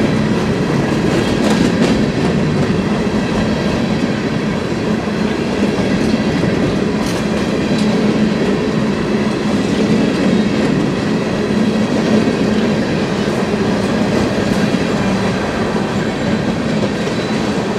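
Freight cars rumble and clatter steadily along the rails close by.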